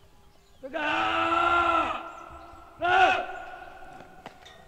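A young man shouts a loud command outdoors.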